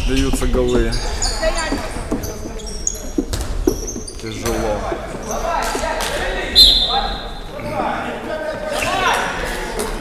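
A handball thuds as it bounces on the floor.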